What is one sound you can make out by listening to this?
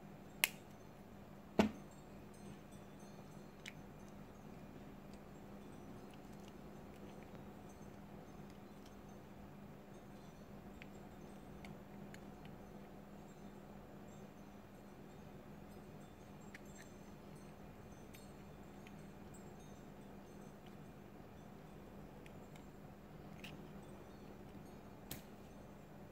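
Small metal pliers click and tap against plastic parts.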